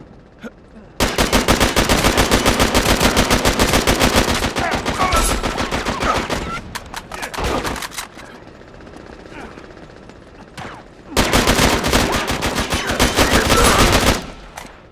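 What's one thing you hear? An automatic rifle fires rapid bursts of gunshots.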